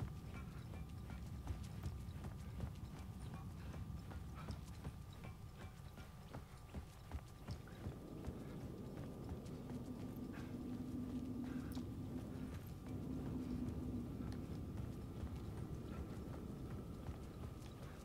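Footsteps walk steadily along a hard floor.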